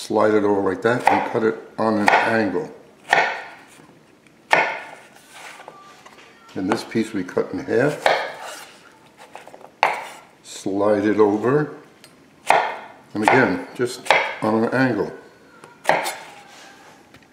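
A knife chops through a vegetable onto a wooden board.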